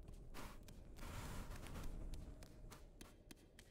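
Footsteps climb stone steps.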